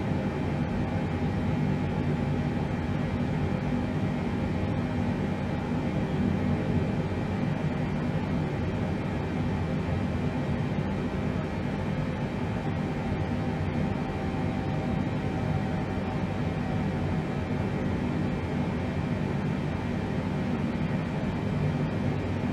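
Jet engines hum with a low, steady drone.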